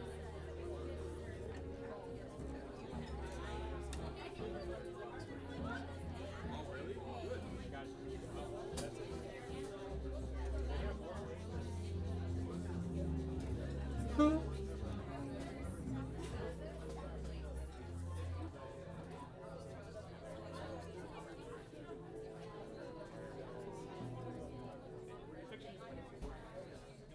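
A double bass plays a deep walking bass line.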